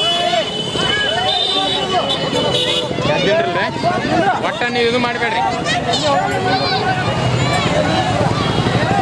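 A crowd of children chatter and shout excitedly outdoors.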